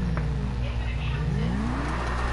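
A motorcycle engine revs up and down.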